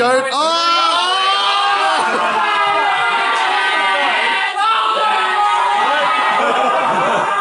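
Young men cheer and shout loudly close by.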